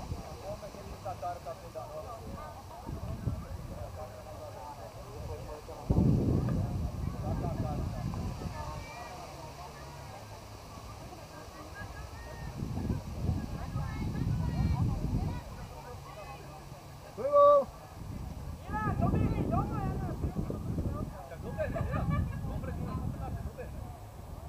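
Wind blusters across an open field.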